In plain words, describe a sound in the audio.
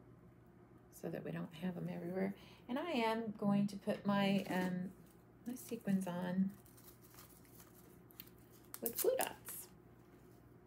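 A middle-aged woman talks calmly into a close microphone.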